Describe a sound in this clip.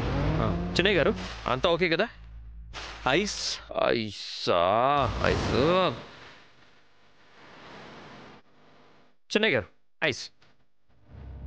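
A young man speaks into a microphone with animation.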